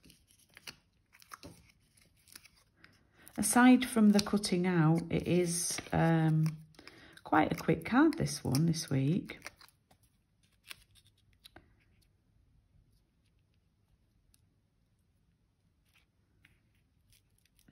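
Paper rustles softly under fingers.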